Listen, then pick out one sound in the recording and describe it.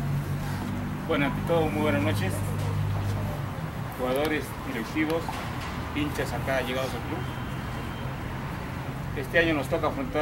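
A man talks with animation close by, outdoors.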